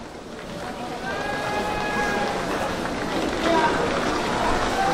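A crowd of fans sings and chants outdoors.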